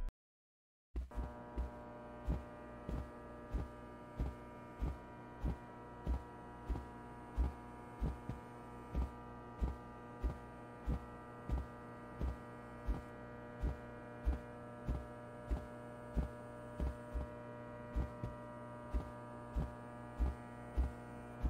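Fluorescent lights hum steadily overhead.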